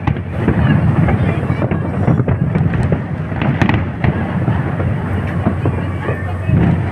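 Fireworks pop and crackle sharply in quick bursts.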